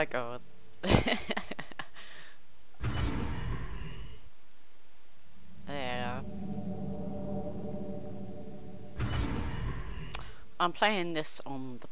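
A young woman talks cheerfully close to a headset microphone.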